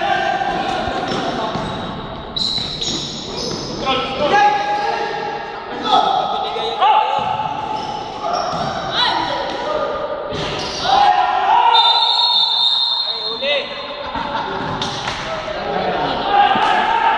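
Men shout and talk across a large echoing hall.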